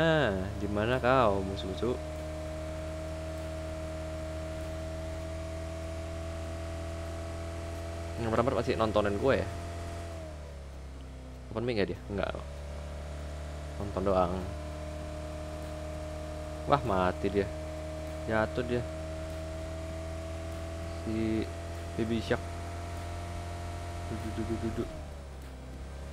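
A car engine hums steadily, rising and falling a little in pitch.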